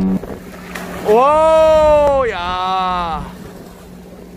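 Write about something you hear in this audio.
Water splashes as a person plunges in.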